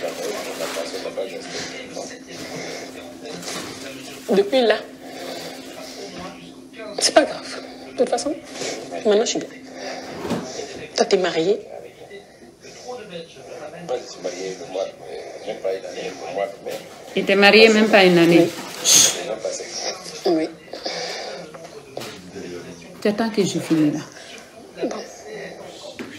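A woman speaks close by, with feeling.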